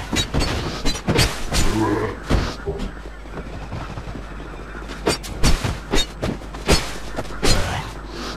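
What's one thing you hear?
Armored footsteps clank on stone.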